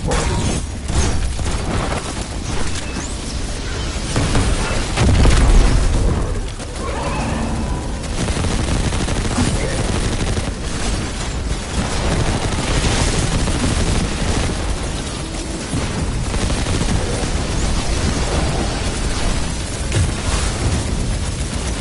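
Gunfire rattles in rapid bursts.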